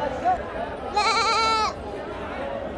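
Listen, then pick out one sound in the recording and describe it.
A goat bleats loudly close by.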